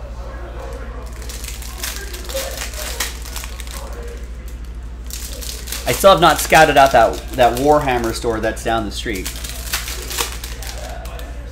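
Foil card packs crinkle and tear as they are opened.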